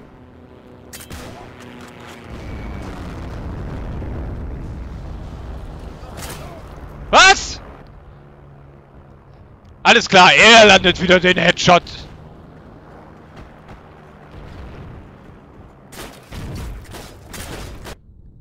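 A rifle fires a few sharp shots.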